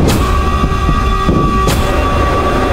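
A machine gun fires in loud bursts.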